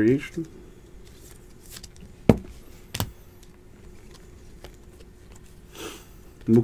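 Trading cards rustle and click as hands shuffle through them.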